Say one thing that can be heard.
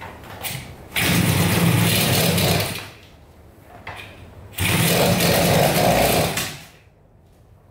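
A small motorcycle engine sputters loudly for a moment and dies.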